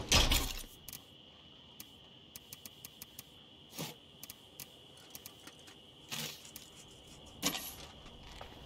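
Menu clicks tick sharply one after another.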